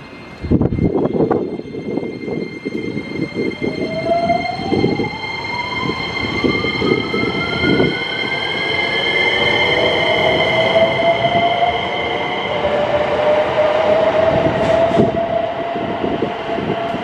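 Train wheels clatter and rumble over the rails.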